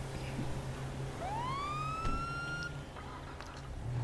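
A car door shuts.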